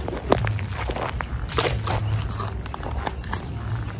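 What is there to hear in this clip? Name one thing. A snake slithers through dry grass with a faint rustle.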